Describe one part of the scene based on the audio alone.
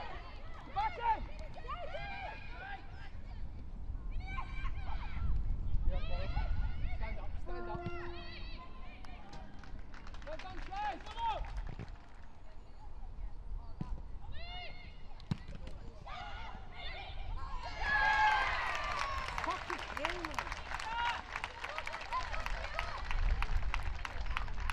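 Young women shout to each other across an outdoor pitch.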